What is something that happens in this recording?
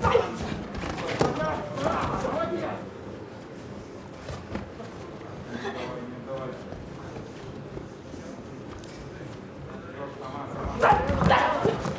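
Gloved punches thud against a boxer's body.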